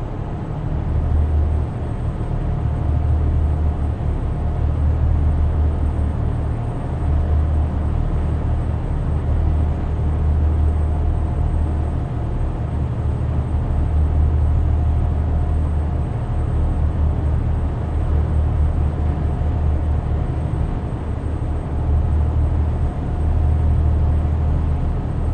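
A truck engine rumbles steadily from inside the cab.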